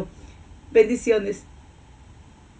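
A woman speaks cheerfully and close by.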